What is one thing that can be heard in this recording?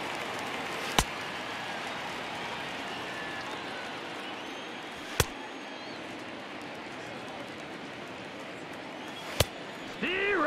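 A baseball smacks into a catcher's mitt with sharp pops.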